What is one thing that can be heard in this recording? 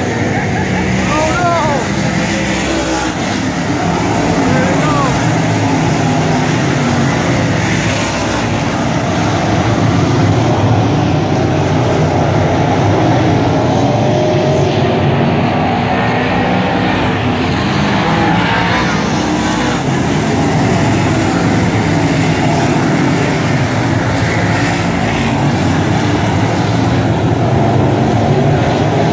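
Race car engines rev and whine as cars speed past.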